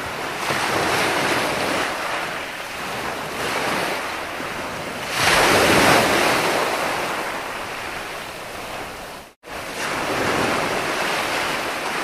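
Ocean waves crash and roll onto the shore, surging and receding in steady swells.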